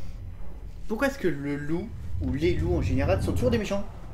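A man's voice speaks close to a microphone, with animation.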